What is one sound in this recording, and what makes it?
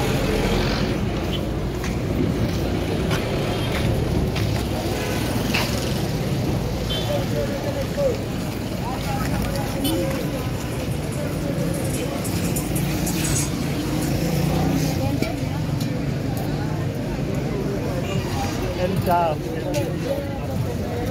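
Street traffic rumbles steadily outdoors.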